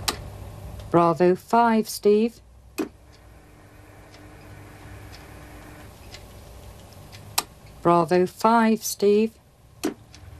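A middle-aged woman speaks briefly and calmly nearby.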